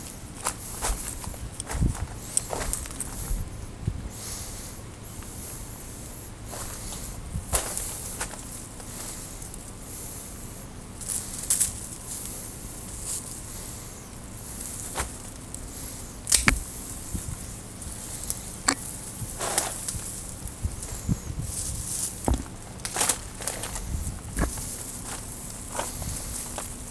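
Pruning shears snip through thin branches.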